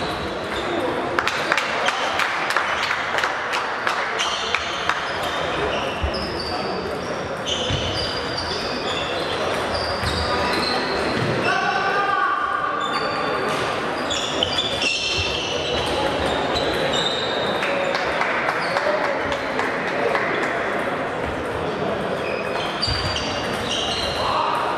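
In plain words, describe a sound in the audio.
Table tennis balls tick sharply against bats and tables, echoing in a large hall.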